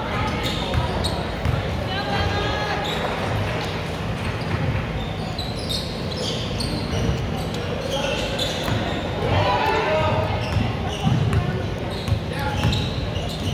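A crowd of spectators talks and calls out in a large echoing hall.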